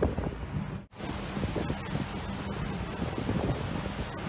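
Sea water splashes against a ship's hull.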